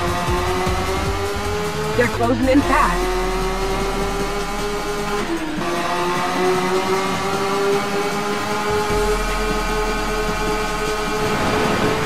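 A racing car engine roars at high revs, dropping briefly with gear changes.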